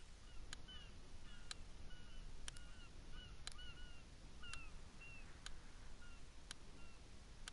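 A game menu clicks sharply each time the selection moves.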